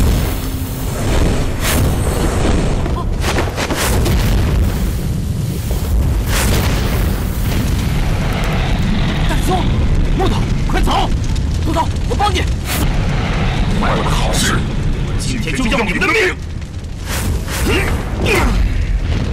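A fireball roars with a deep rumble.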